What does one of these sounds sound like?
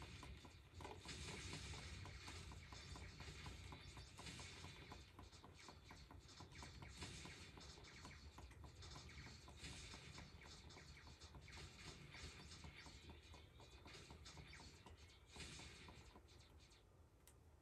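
Electronic explosions burst from a video game on a television.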